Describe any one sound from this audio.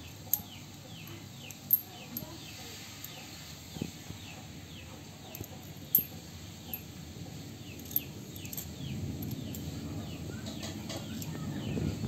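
Fingers rub and scrape over a rough rock.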